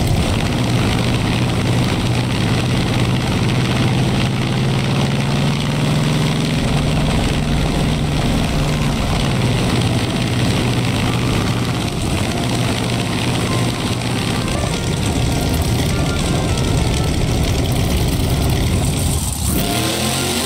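A heavy truck engine roars and rumbles.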